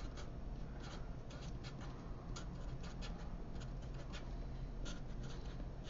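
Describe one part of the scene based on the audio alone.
A marker squeaks and scratches on paper in short strokes.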